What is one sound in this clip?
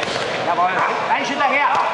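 Gloved punches thud against a boxer's body.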